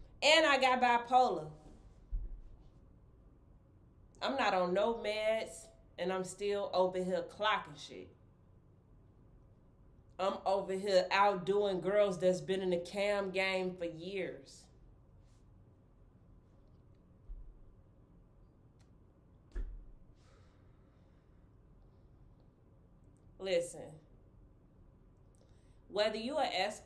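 A young woman talks close to the microphone with animation, in bursts with pauses.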